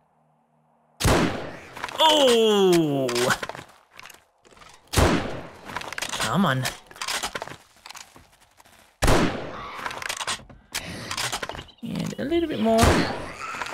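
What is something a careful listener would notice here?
Gunshots fire in loud single bangs.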